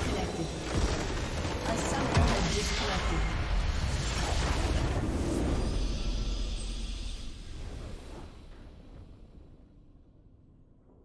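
A massive structure explodes with a deep, rumbling boom that slowly fades.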